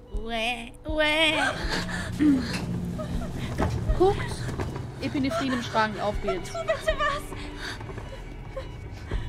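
A young woman speaks in a distressed, pleading voice.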